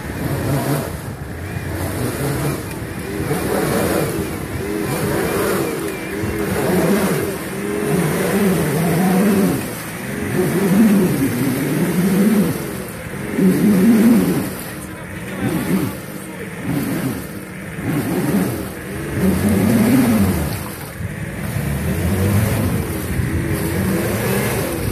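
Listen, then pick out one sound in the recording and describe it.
Tyres churn and splash through deep mud.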